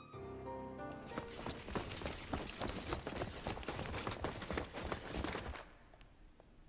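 Armoured boots clank as a group marches in step.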